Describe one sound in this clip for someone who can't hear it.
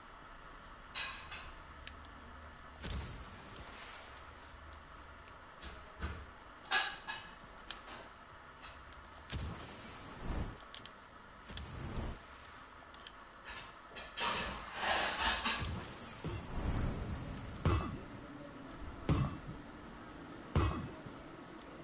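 Short thuds and whooshes sound now and then.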